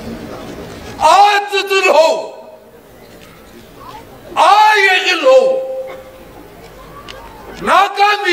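A man shouts loud, long rising chants through a microphone.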